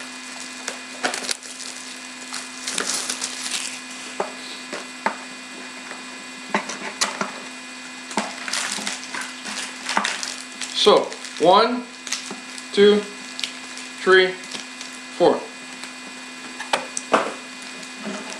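Plastic packaging clicks and snaps as it is opened.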